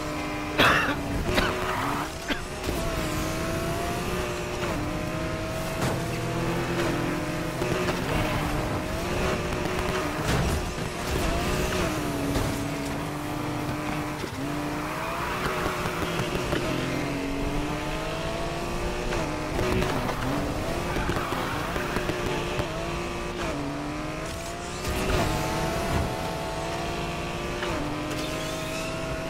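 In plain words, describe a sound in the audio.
A car engine revs high and shifts gears repeatedly.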